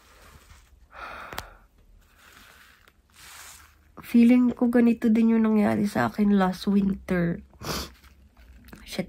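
A young woman sniffles and blows her nose.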